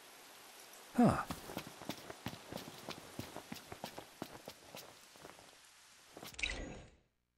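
Footsteps crunch quickly over soft ground.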